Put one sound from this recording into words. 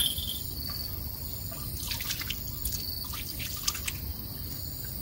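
A man rustles dry grass and brush close by.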